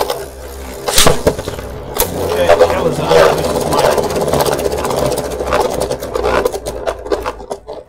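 Spinning tops clash and clack against each other.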